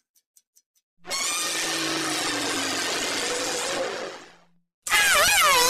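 A small dinosaur lets out a long, loud roar.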